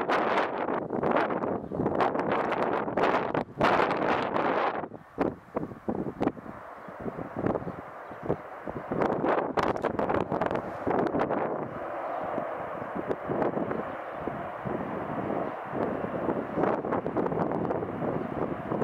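Strong wind buffets outdoors.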